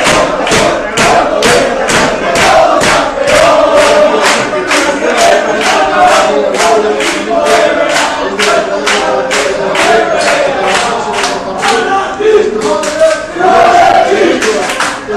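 A large crowd of men chants loudly in unison.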